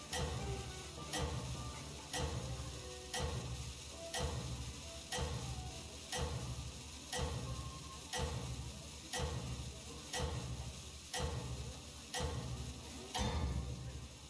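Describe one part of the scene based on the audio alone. A game timer ticks once every second.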